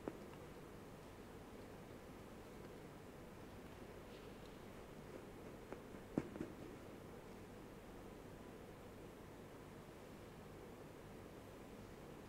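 Footsteps tap now and then on a hard floor in a quiet, echoing hall.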